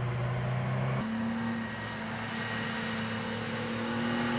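A truck's diesel engine rumbles up close as the truck drives by.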